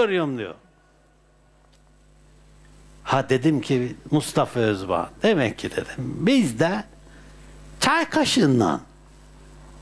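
An elderly man speaks calmly and with animation, close by.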